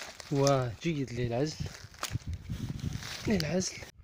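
Dry fibres rustle and crackle as a hand pulls at them.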